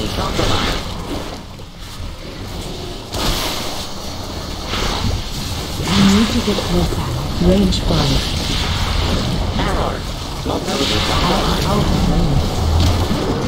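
Video game spell effects whoosh and crackle during a battle.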